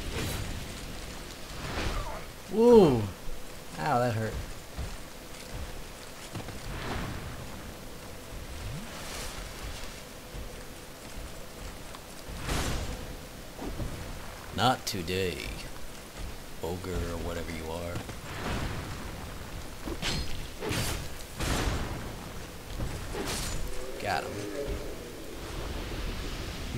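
A sword strikes with sharp, heavy hits.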